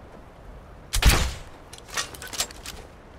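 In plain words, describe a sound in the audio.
A crossbow fires with a sharp snap and clatters.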